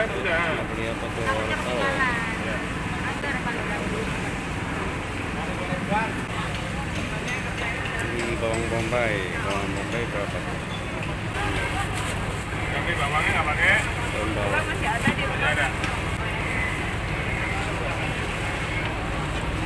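A market crowd chatters in the background.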